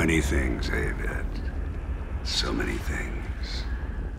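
An elderly man talks with amusement.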